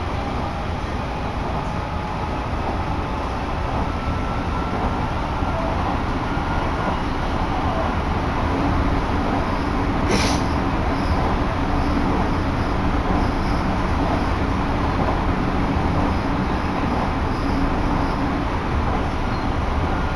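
Strong wind buffets the microphone, roaring steadily.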